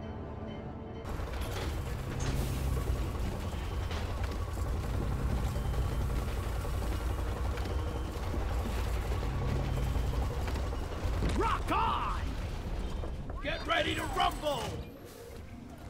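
A drop pod rumbles and shakes as it descends.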